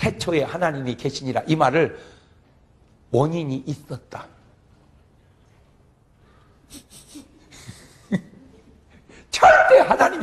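A middle-aged man speaks with animation through a microphone, in bursts with pauses.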